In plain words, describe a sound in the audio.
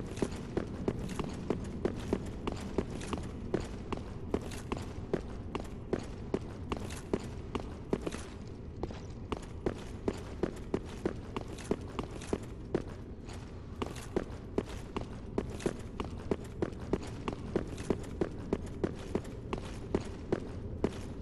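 Armoured footsteps clank quickly on stone, in a large echoing hall.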